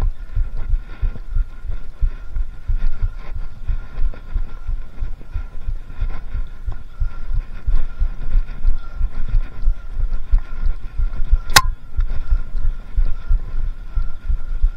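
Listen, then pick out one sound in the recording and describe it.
Bicycle tyres roll and crunch over a bumpy dirt trail.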